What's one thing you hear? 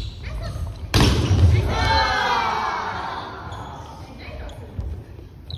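A group of young people cheer and laugh loudly.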